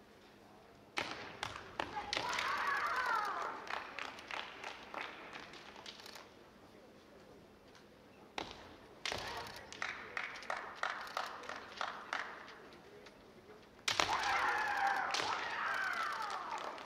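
Fencers let out loud, drawn-out shouts that echo through a large hall.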